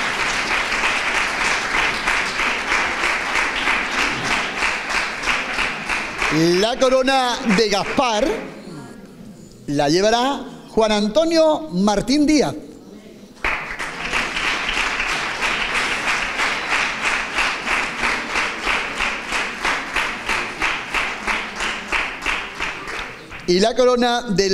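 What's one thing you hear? An audience claps in a steady rhythm.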